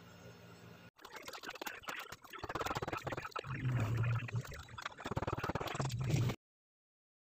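A screwdriver scrapes against metal.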